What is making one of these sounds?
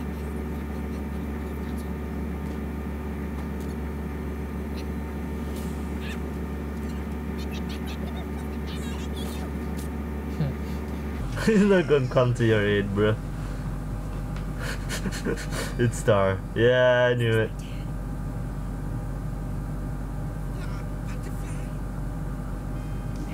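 A young man talks calmly close to a microphone.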